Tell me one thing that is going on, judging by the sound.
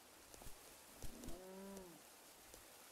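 An animal lets out a short whining call.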